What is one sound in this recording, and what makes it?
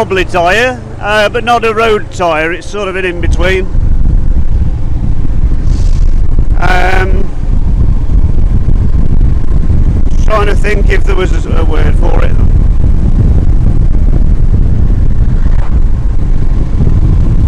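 A motorcycle engine hums and revs as the bike rides along.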